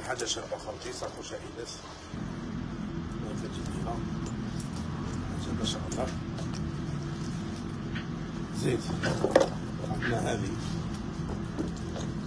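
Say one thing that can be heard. A man talks to the listener close by.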